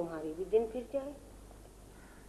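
A woman speaks briefly, close by.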